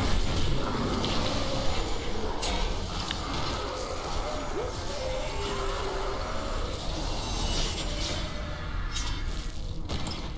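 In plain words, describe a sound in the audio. Fiery magic blasts crackle and boom in a fight.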